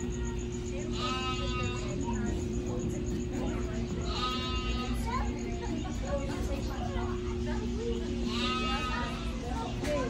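A young child squeals in high, drawn-out cries nearby.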